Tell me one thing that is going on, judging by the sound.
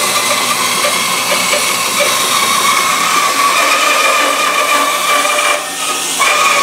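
A band saw blade cuts through wood with a rasping buzz.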